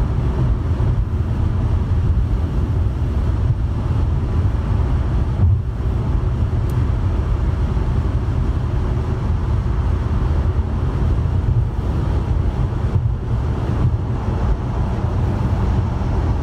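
A car's engine hums steadily with a low road rumble from inside the car.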